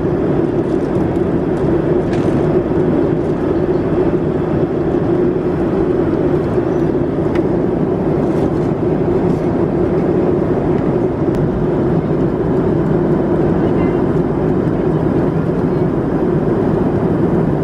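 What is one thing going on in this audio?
A jet engine roars steadily inside an airliner cabin in flight.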